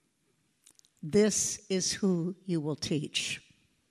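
An elderly woman speaks with animation through a microphone in a large hall.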